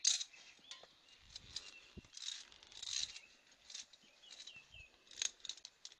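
Gloved hands clink and scrape against metal rungs and a steel cable.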